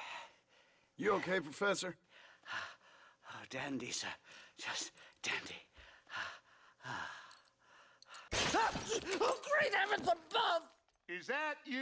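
An elderly man talks with animation.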